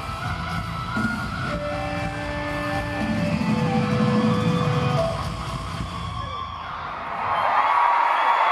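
A rock band plays loudly with heavy guitars and drums in a large arena.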